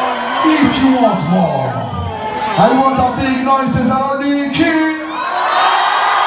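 A man raps loudly into a microphone over a loudspeaker.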